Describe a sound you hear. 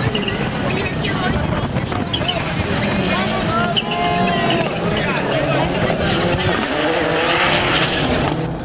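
Rally car engines roar and rev loudly close by.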